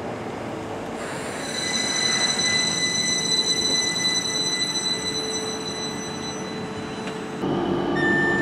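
Train brakes squeal with a steady high whine.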